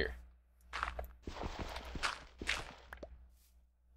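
Dirt crunches as a block is dug out.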